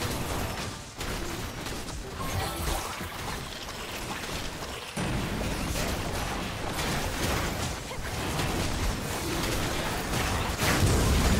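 Magical spells crackle and burst in a fast battle.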